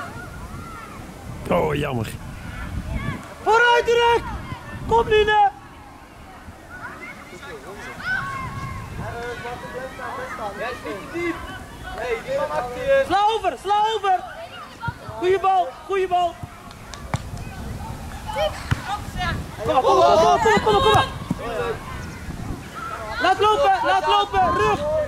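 Young football players shout and call to each other across an open field.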